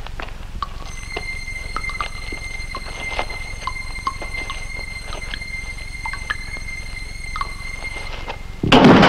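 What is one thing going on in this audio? Loose stones scrape and clatter under a crawling man.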